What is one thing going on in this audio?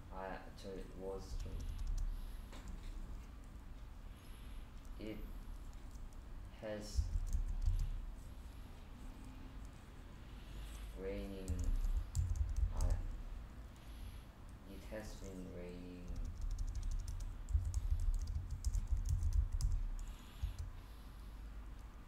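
Computer keys click in quick bursts of typing.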